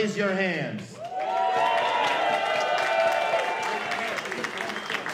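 A crowd cheers and whoops.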